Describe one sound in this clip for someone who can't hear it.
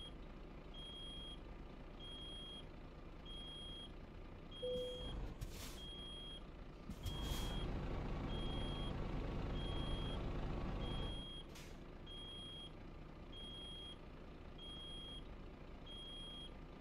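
A warning alarm beeps repeatedly at an even pace.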